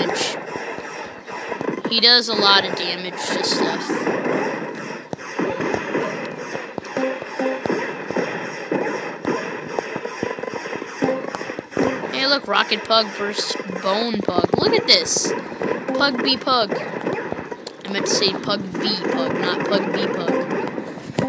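Rapid electronic shots fire over and over.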